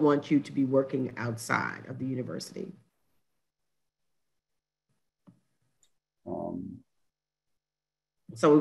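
A middle-aged woman speaks calmly over an online call, pausing between phrases.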